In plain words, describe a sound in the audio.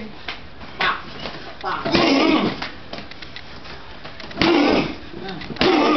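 Punches and kicks smack sharply against padded mitts.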